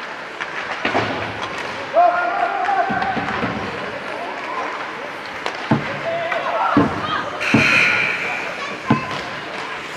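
Hockey sticks smack pucks with sharp cracks.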